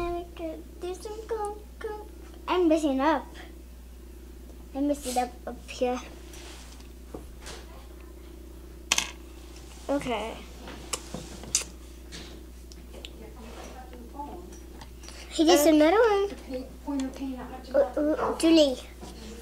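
Another young girl speaks softly close by.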